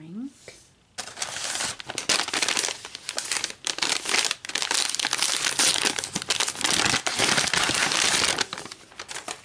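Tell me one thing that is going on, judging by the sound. A paper bag rustles and crinkles as it is handled.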